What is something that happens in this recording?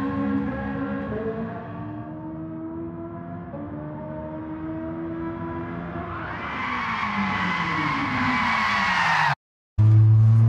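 A sports car engine revs high as the car races past.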